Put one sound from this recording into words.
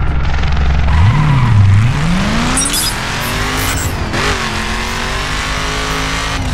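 A car engine revs hard and climbs in pitch as the car speeds away.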